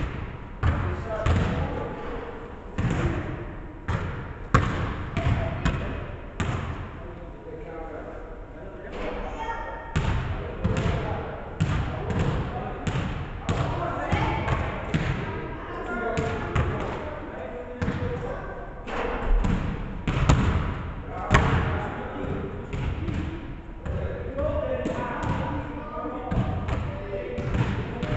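A basketball bounces repeatedly on a wooden floor in a large echoing gym.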